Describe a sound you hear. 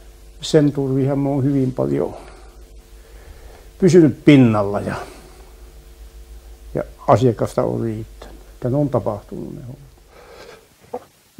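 An elderly man talks with animation, close by.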